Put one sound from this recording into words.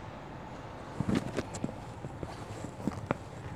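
Cloth rustles and flaps as it is handled up close.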